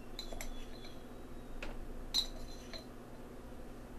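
A metal spoon clinks against a metal cup.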